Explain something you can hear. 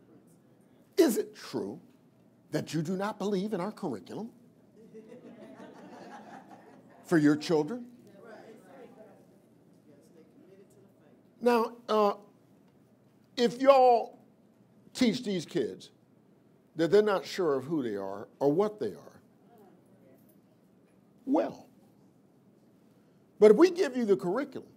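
An elderly man speaks with animation into a microphone, with pauses between phrases.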